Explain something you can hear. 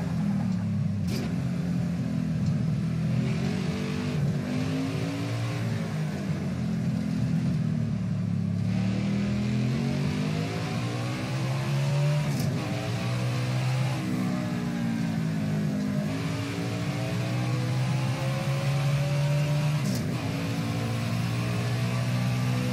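A race car engine roars loudly, its pitch rising and falling as the car speeds up and shifts gears.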